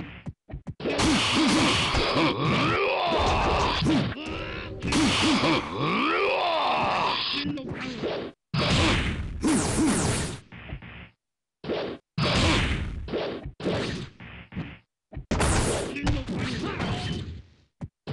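Blades swing with loud whooshing swishes.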